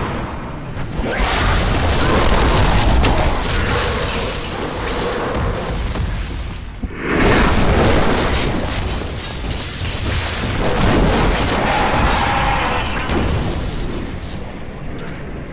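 Magic spells crackle and blast loudly in bursts.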